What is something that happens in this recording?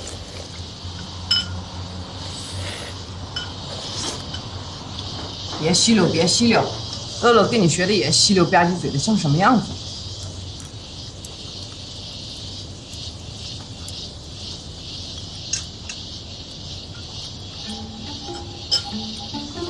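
Chopsticks and spoons clink against bowls.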